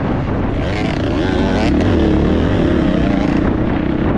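Another dirt bike engine revs nearby.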